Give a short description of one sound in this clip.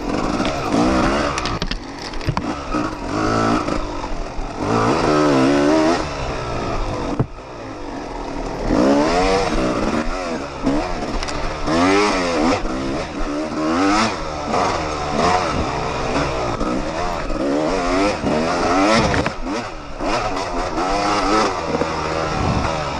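Tyres churn through mud and dirt.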